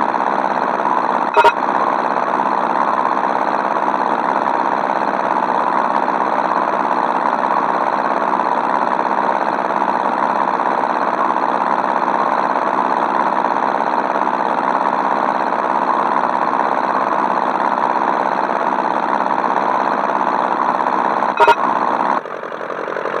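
A single-engine propeller plane drones in a flight game.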